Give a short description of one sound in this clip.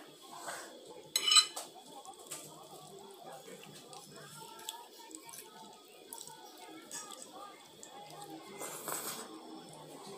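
Two women chew and slurp noodles close by.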